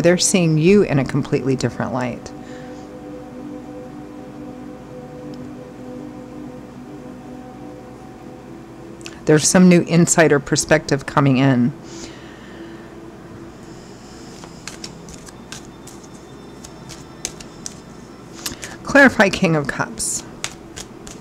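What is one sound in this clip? A woman speaks softly into a close microphone, in short phrases with long pauses.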